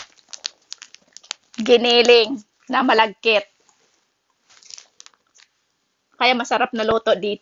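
A plastic bag crinkles in a woman's hands.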